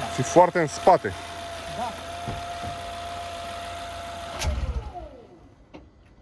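A car engine idles with a steady whine, then shuts off and winds down.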